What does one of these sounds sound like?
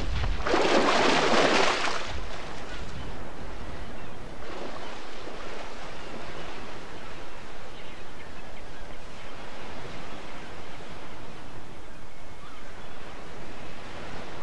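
Water splashes as a creature wades through it.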